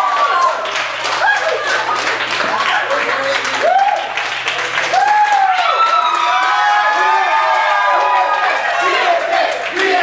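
A group of young men and women cheers and shouts excitedly.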